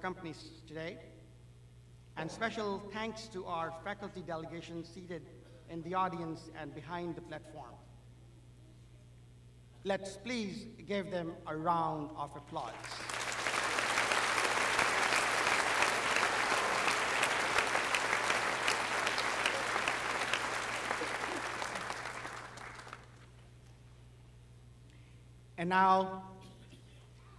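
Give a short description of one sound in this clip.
A man speaks formally through a microphone and loudspeakers in a large hall.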